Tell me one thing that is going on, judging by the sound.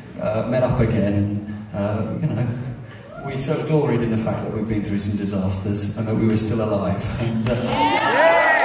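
A man sings loudly through a microphone and loudspeakers in a large echoing hall.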